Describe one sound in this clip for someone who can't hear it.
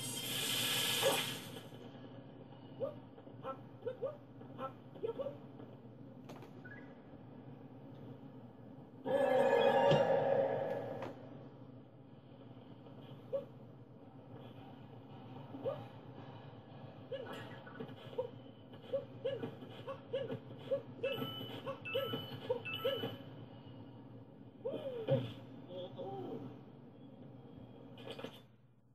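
Video game music and sound effects play from a television speaker.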